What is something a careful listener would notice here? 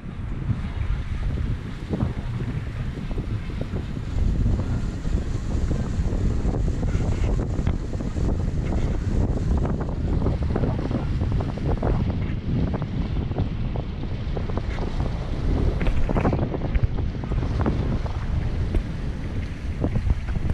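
Water splashes against a moving boat.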